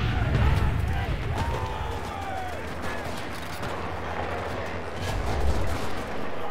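Gunshots crack and boom close by.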